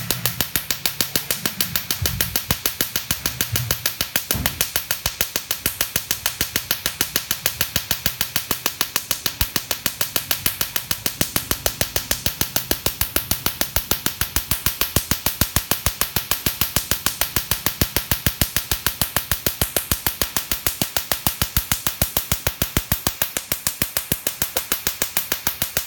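A laser device snaps with rapid, steady clicking pulses.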